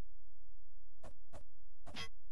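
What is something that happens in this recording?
A sword thrusts and strikes with sharp hits.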